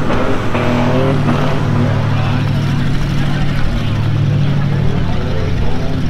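An engine roars steadily.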